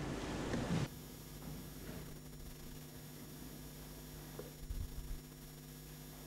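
People shuffle and sit down on wooden chairs.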